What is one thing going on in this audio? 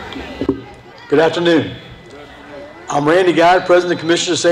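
An elderly man speaks into a microphone over loudspeakers outdoors.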